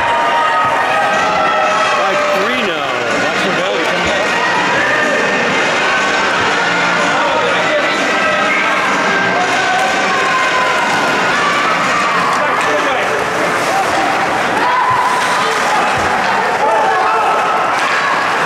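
A crowd of spectators chatters in a large echoing rink.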